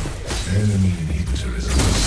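Electric lightning crackles and roars loudly.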